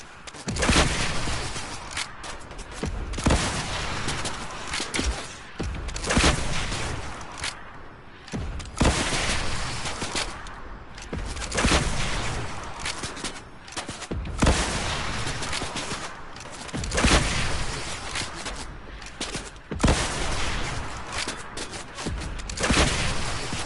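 Rockets explode with loud booms.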